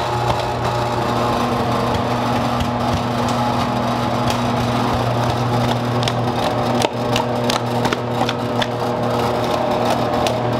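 A dough sheeting machine hums steadily as its rollers turn.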